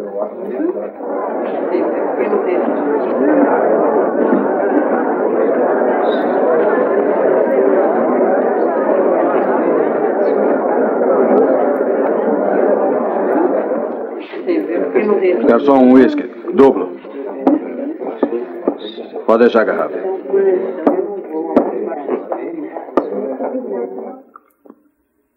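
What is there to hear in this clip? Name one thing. A large crowd of men and women chatters loudly.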